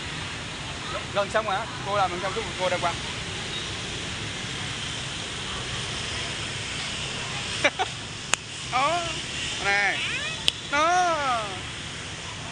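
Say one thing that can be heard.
A young child speaks in short, high-pitched bursts nearby.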